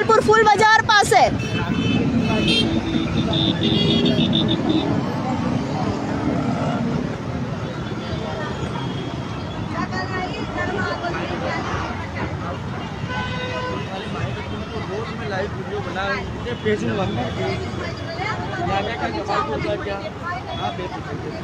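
Motorbike and scooter engines hum steadily as traffic passes close by.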